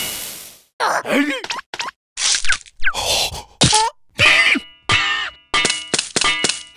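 A cartoon creature chatters and squeals in a high, squeaky voice.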